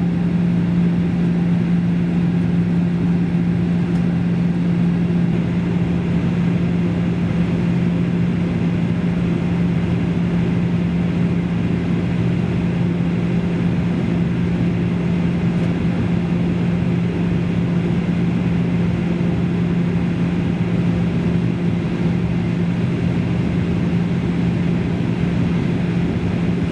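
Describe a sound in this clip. A jet airliner's engines drone steadily inside the cabin.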